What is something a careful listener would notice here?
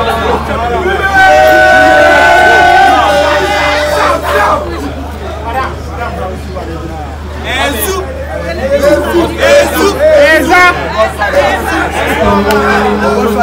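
A crowd of young men and women sings and chants loudly nearby, outdoors.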